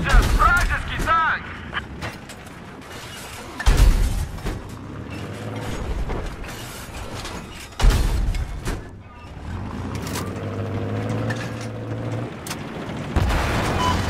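Loud explosions boom and rumble.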